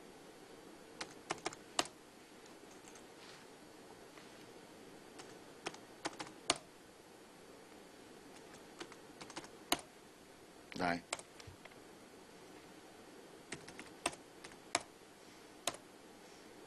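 Computer keys click sharply now and then, close by.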